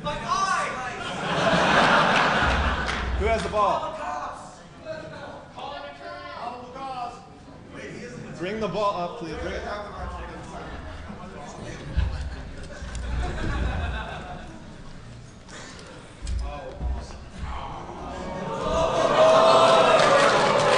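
An audience laughs and cheers.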